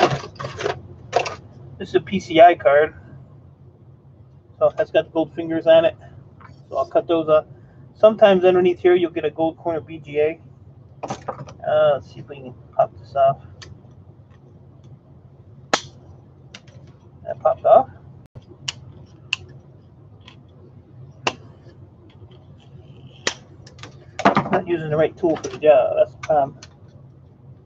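Small plastic and metal parts click and clatter as they are handled.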